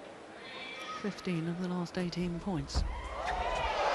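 A racket strikes a shuttlecock with sharp smacks.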